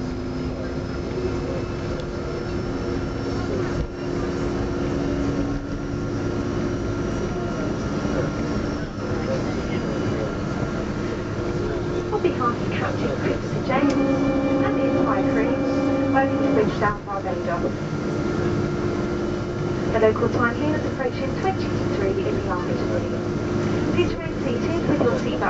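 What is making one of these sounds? A jet engine roars steadily from close by.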